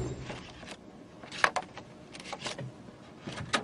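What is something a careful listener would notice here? Fingers flick through a box of plastic disks with light clacks.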